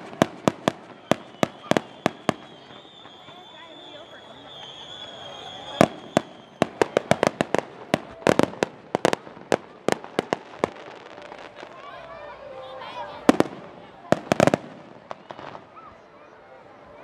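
Fireworks bang and pop sharply outdoors, one after another.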